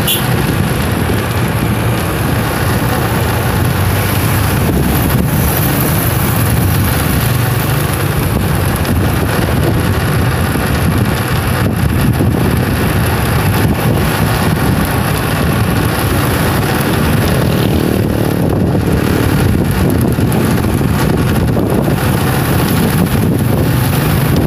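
A motorcycle engine hums while riding along a road.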